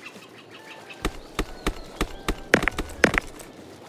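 A pickaxe strikes rock again and again with sharp ringing clinks.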